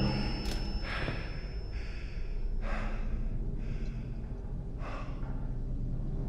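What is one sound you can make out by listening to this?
A young man breathes heavily.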